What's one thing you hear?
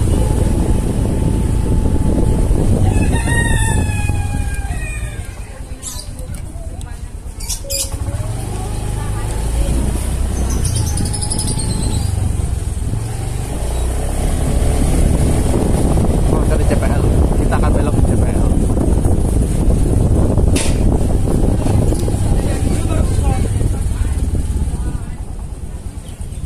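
A motorbike engine hums steadily, close by.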